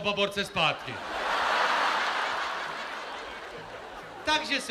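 A large crowd cheers and applauds.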